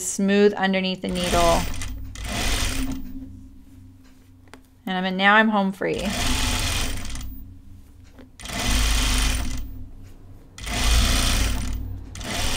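A sewing machine runs in short bursts.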